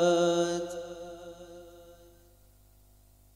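A young man sings a long held note into a microphone, fading away.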